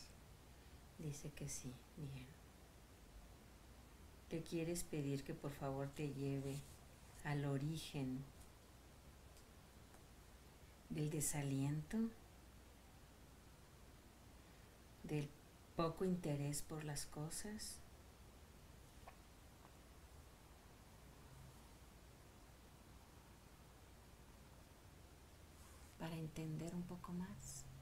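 A woman speaks calmly and softly nearby.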